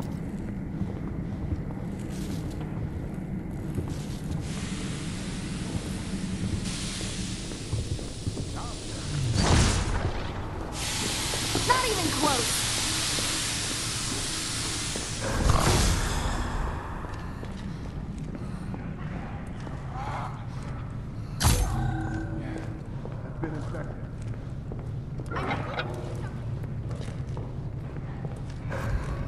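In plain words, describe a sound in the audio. Footsteps shuffle steadily on a hard floor.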